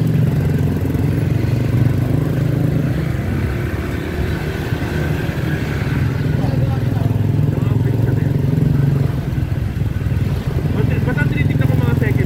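Tricycle engines putter nearby in traffic.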